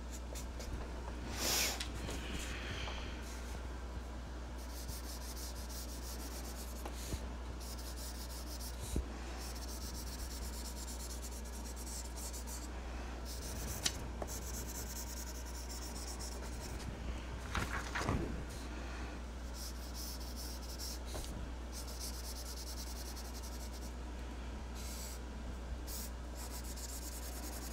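A marker tip scratches and squeaks across paper.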